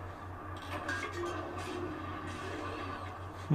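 Video game weapon strikes play through a television speaker.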